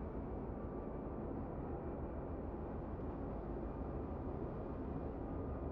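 A ship's engines rumble low and steady as the hull cuts through water.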